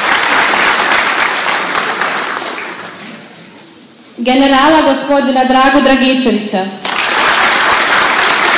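A large audience applauds in an echoing hall.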